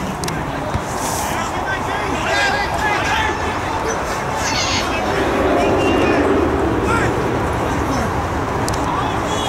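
A small crowd murmurs and cheers outdoors.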